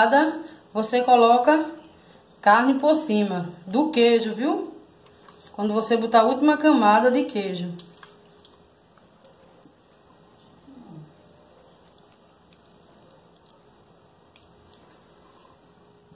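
A ladle softly scrapes and taps against a dish.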